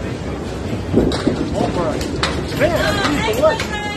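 A bowling ball rumbles down a wooden lane.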